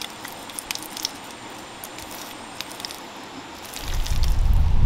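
Wet mud squelches as hands press it into lumps.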